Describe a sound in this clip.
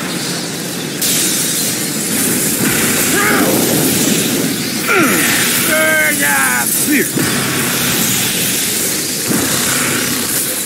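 A flamethrower roars with a steady rushing hiss.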